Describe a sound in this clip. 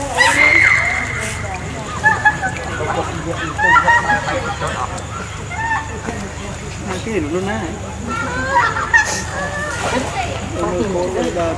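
Water splashes and sloshes as monkeys swim.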